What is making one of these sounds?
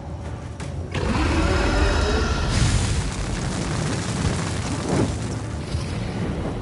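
A loud rumbling roar swells up.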